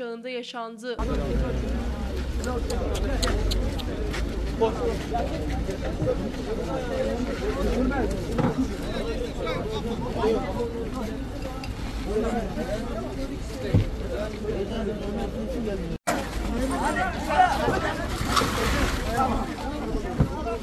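A crowd of men talk and shout excitedly nearby.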